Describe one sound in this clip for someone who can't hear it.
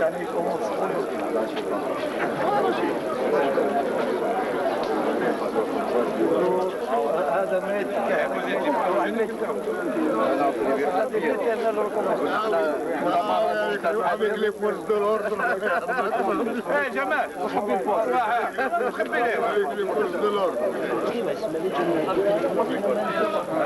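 A middle-aged man speaks with animation into a handheld microphone outdoors.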